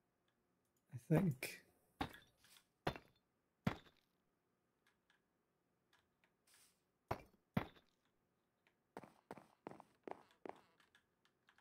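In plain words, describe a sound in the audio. Wooden blocks are set down with short, dull knocks.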